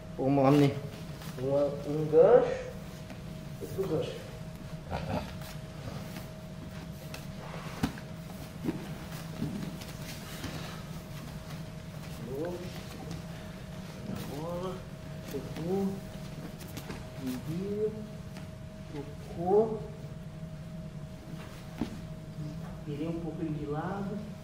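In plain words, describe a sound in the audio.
Bodies shift and slide on a padded mat.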